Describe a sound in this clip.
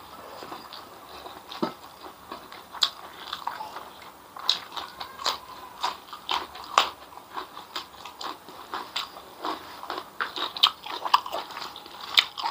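A man chews food loudly and wetly close to a microphone.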